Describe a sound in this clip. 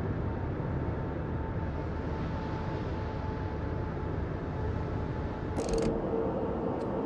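A battleship rumbles low as it cuts through the sea.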